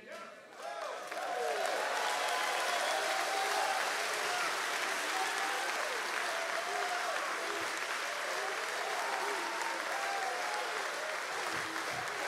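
A man speaks loudly and with animation through a microphone in a large echoing hall.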